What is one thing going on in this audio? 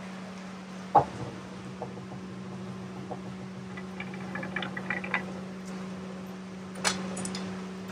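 Metal clanks against metal a few times.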